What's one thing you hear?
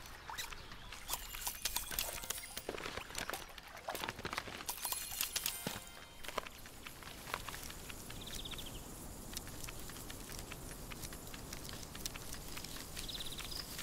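Light footsteps patter and crinkle across paper.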